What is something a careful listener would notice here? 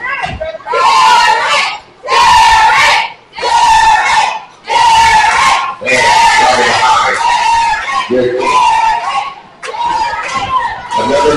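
A crowd of spectators chants loudly in repeated bursts in an echoing hall.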